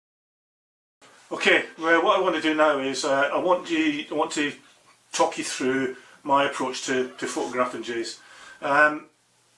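An older man talks calmly and close to a microphone.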